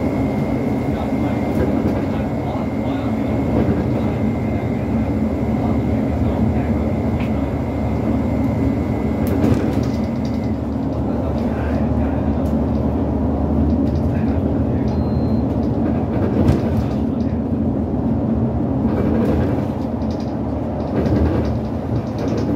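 A bus engine drones and rattles steadily from inside the cabin.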